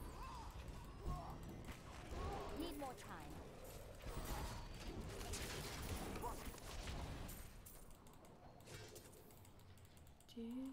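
Fiery spell blasts and combat clashes burst in a game.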